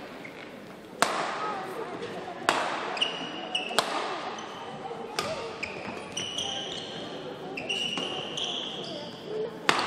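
Rackets smack a shuttlecock back and forth in a rally, echoing in a large hall.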